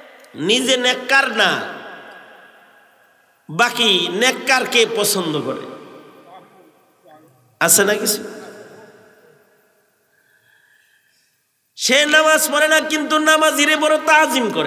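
A man preaches loudly and with fervour into a microphone, his voice echoing in bursts.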